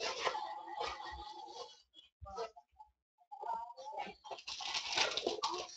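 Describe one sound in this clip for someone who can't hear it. Cardboard scrapes softly as a box is opened by hand.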